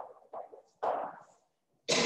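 A marker squeaks against a whiteboard.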